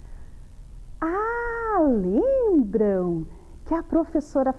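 A young woman speaks brightly and with animation close by.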